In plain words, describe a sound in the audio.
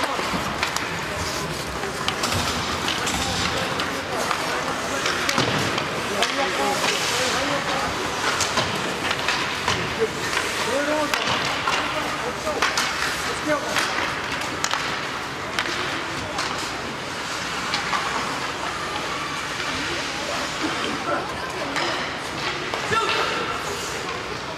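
Ice skates scrape and carve across the ice in an echoing indoor rink.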